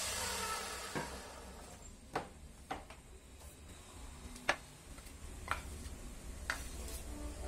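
Wooden pieces knock and clatter on a workbench.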